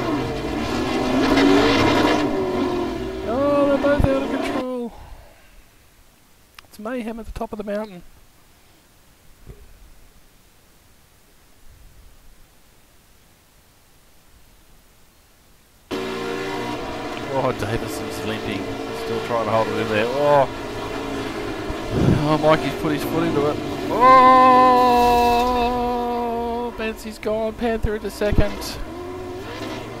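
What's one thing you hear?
Racing car engines roar and whine as they change gear.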